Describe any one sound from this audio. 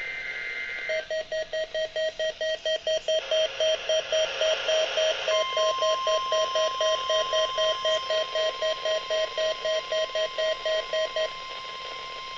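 A radio loudspeaker gives out a fast, rapid beeping alert.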